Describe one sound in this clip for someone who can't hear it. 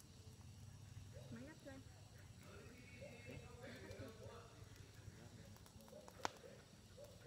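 A wood fire crackles and pops close by.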